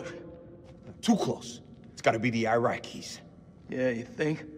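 Another man answers with animation.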